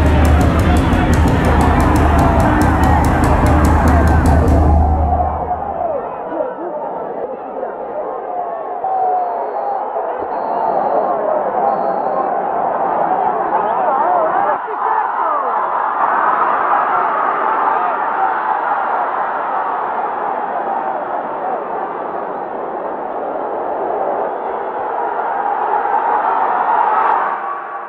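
A large crowd roars and cheers loudly outdoors.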